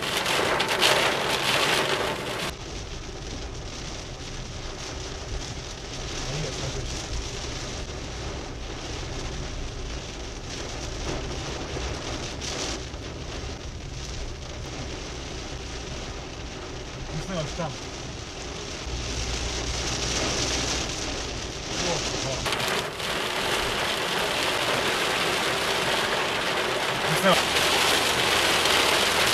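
Rain patters steadily on a car windshield.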